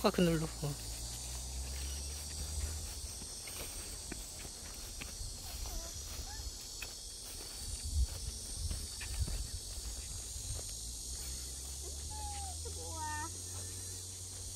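A young child's high voice calls out nearby.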